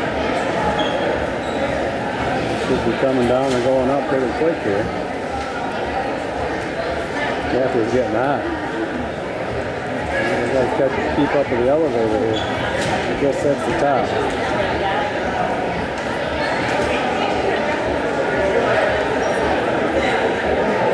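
A crowd murmurs steadily outdoors.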